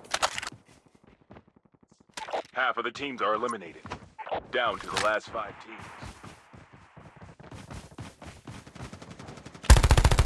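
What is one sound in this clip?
Footsteps run quickly over grass and concrete.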